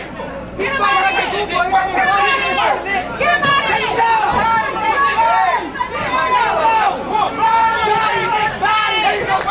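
Boxing gloves thud against a body.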